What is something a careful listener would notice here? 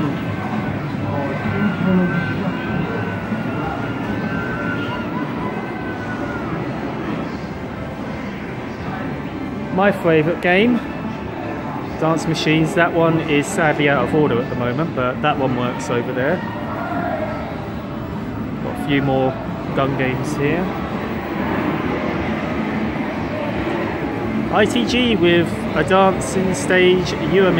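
Arcade game machines play electronic beeps, jingles and music all around.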